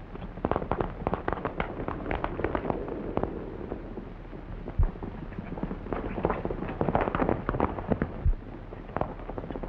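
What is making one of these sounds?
Horses gallop, their hooves pounding on dirt.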